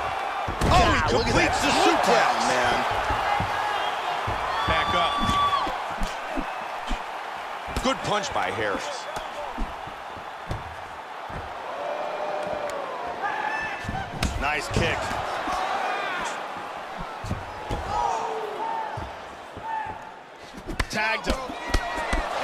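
A crowd cheers and murmurs steadily.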